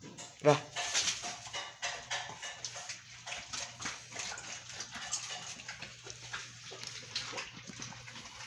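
Two German Shepherds tear and crunch through raw chicken bones.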